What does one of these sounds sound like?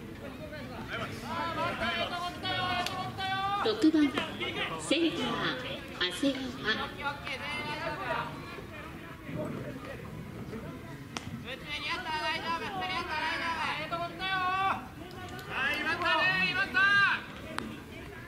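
Young men on a baseball field shout and call out loudly in drawn-out chants.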